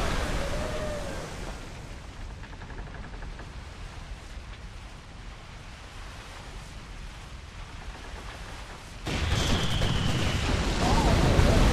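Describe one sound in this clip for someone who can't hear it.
Waves wash against wooden ships.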